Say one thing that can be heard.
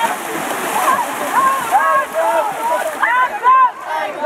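Water splashes loudly as children kick and thrash.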